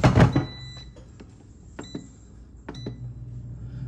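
An appliance beeps as its buttons are pressed.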